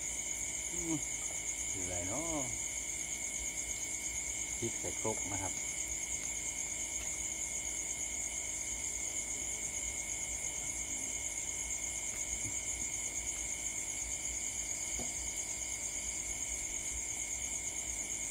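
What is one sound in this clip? A small fire crackles softly nearby.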